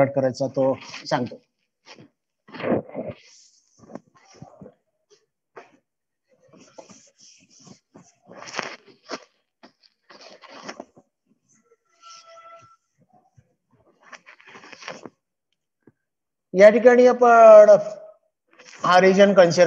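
A cloth eraser scrubs against a chalkboard.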